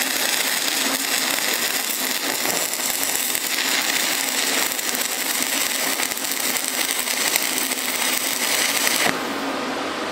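An arc welder crackles and sizzles steadily.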